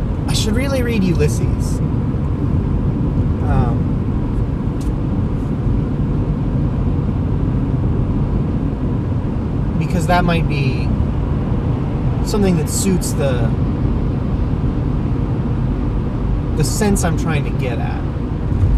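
A car engine hums steadily as tyres roll over the road.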